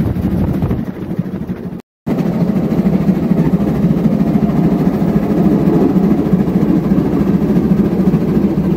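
A train rumbles and clatters along the tracks at speed.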